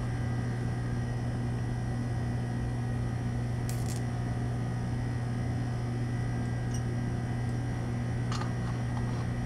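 A glass dish clinks lightly.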